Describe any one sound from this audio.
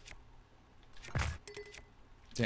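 An explosion bursts with a loud blast.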